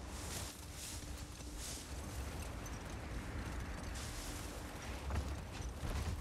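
A sled slides hissing over snow.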